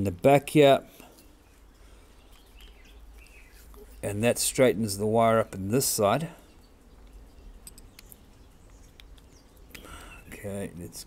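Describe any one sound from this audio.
A small knife scrapes softly at wood, close by.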